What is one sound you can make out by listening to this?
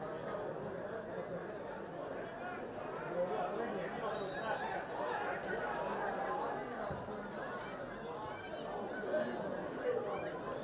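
A small crowd murmurs and calls out in an open stadium.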